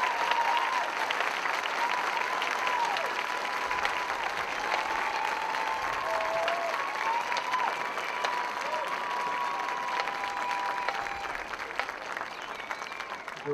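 A large crowd cheers and applauds loudly in an open stadium.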